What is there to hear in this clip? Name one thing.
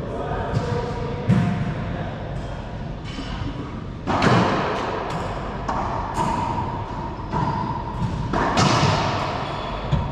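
A ball smacks hard off the walls of an echoing court.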